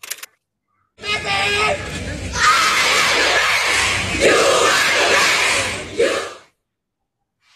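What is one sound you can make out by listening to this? A large crowd sings and cheers outdoors.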